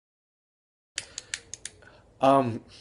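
A man speaks close to the microphone with animation.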